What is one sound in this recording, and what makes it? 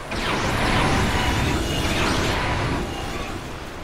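A magic spell bursts with a loud, shimmering whoosh.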